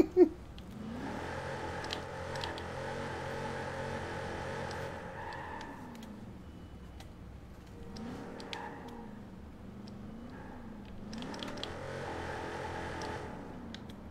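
A car engine revs loudly and roars.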